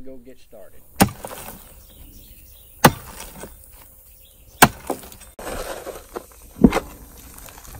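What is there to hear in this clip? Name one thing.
A pick strikes into hard clay soil.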